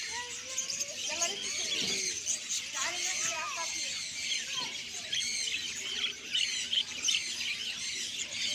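Many small birds chirp and twitter busily close by.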